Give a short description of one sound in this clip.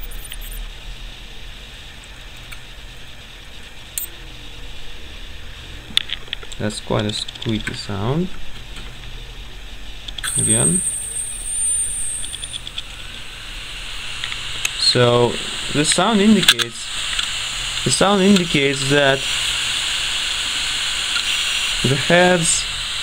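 An open hard drive whirs with a steady low hum.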